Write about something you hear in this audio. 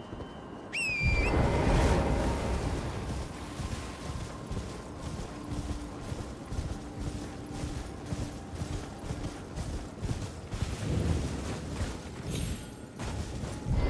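Hooves gallop steadily over soft ground.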